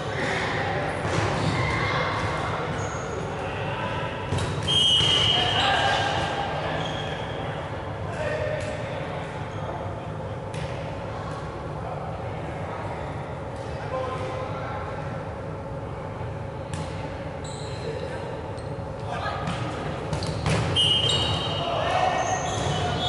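Young men call out and shout to each other in a large echoing hall.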